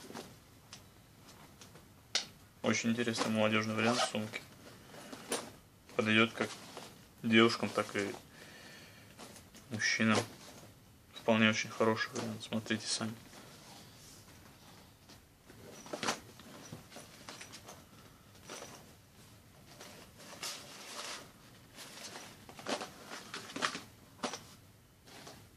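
Leather handbags rustle and creak as hands handle them.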